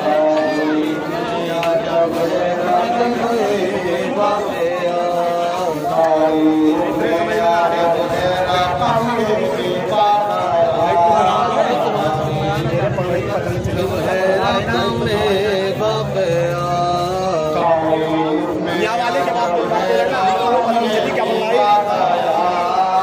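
A man sings a lament loudly through a microphone and loudspeakers.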